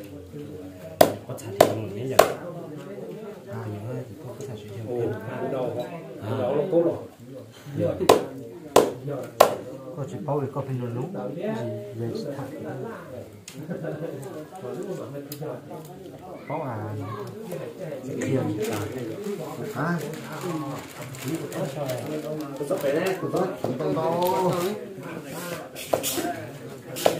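A knife chops sharply on a wooden block.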